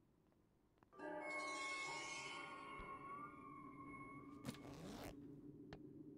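A short chiming jingle plays as an item is picked up.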